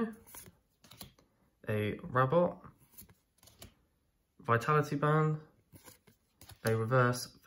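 Playing cards slide and flick against each other in a hand.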